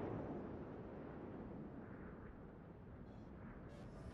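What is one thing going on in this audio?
Shells burst into the sea with a deep, rumbling splash.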